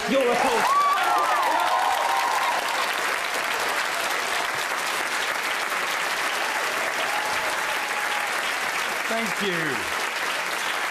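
Young people in a crowd cheer and whoop.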